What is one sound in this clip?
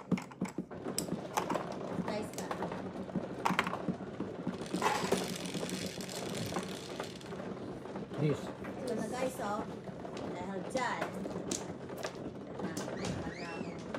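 Mahjong tiles click and clack against each other on a table.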